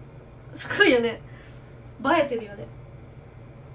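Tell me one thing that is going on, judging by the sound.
A young woman speaks brightly, close by.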